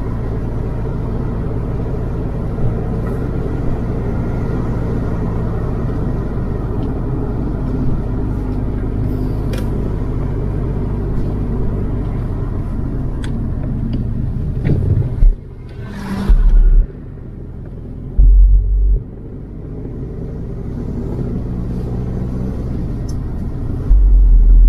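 A car engine hums steadily, heard from inside the car as it drives.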